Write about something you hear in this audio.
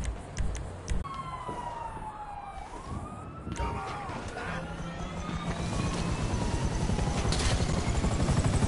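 A helicopter engine whines as it starts up.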